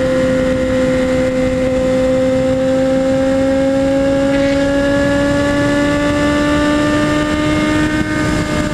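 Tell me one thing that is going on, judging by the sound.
An inline-four sport motorcycle engine whines high in the revs, its pitch slowly rising as it accelerates at high speed.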